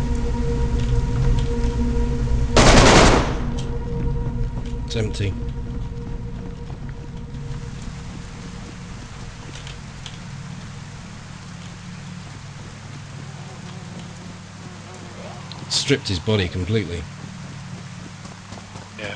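Footsteps swish through wet grass.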